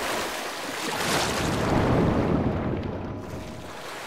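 A low underwater rumble swells and fades.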